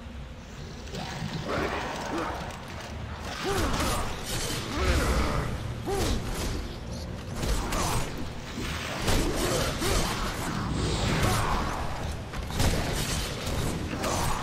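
Blades and chains clash and strike in a fast fight.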